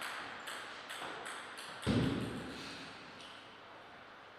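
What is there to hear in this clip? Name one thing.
A table tennis ball bounces repeatedly in an echoing hall.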